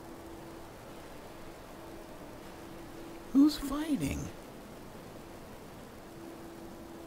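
A magic spell hums softly and steadily.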